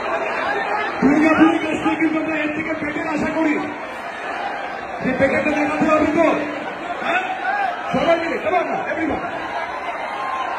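Young men nearby whoop and chant loudly.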